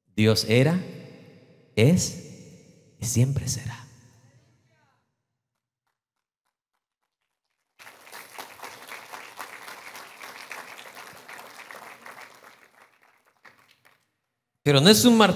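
A man speaks with animation into a microphone in a large, echoing hall.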